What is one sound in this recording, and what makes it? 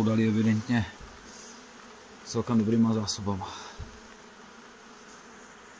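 Bees buzz softly around an open hive.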